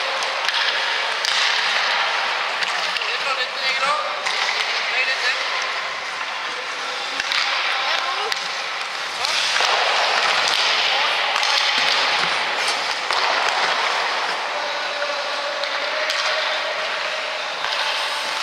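A hockey stick slaps a puck.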